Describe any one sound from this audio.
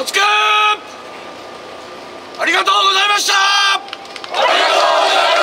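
A group of men chant together in long, loud held notes outdoors.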